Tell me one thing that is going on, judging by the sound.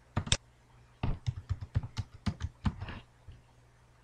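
Keys clatter on a keyboard in a quick burst of typing.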